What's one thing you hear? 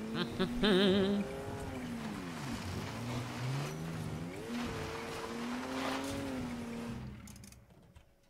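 A van engine hums and revs, its pitch rising and falling.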